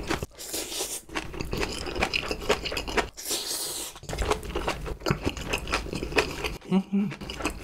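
A man slurps noodles close to a microphone.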